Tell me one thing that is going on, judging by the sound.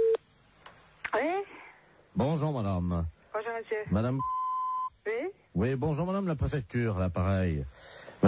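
A man speaks with animation over a phone line.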